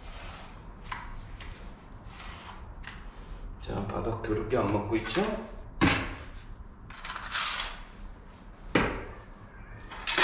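A trowel scrapes across wet adhesive on a floor.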